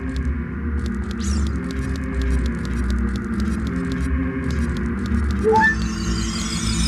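Quick footsteps patter on a hard stone floor.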